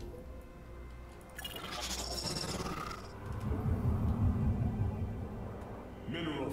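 Electronic game sound effects whoosh and rumble.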